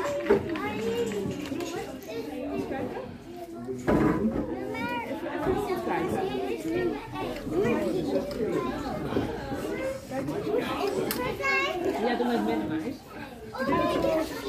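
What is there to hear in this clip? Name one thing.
A toddler babbles and chatters close by.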